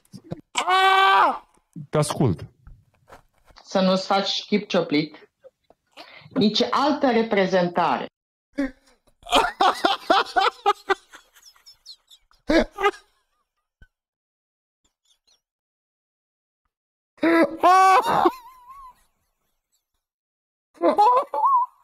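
A young man laughs and shouts loudly into a microphone.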